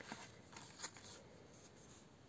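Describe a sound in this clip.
A stiff paper card rustles softly as it is handled.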